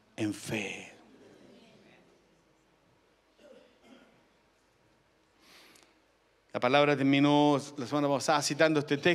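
A man speaks with animation into a microphone, heard over loudspeakers in a hall.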